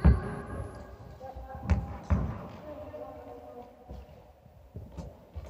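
A tennis ball is struck by a racket with sharp pops in a large echoing hall.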